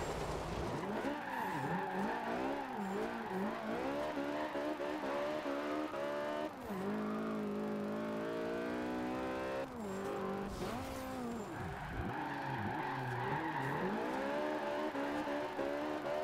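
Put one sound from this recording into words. Tyres screech while the car drifts.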